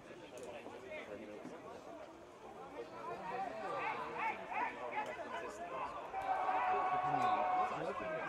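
Players call out to each other across an open outdoor pitch.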